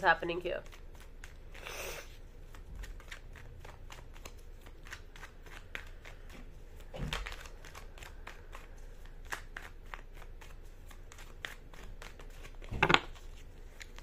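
Playing cards riffle and flick softly.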